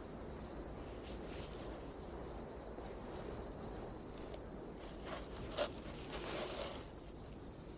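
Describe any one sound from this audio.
Feet scrape and slide on loose gravel.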